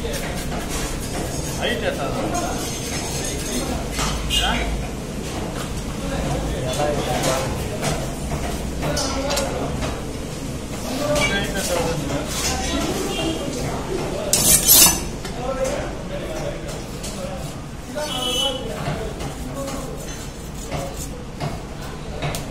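A knife scrapes scales off a fish.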